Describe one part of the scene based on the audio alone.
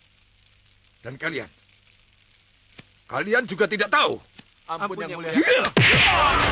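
A man speaks forcefully, up close.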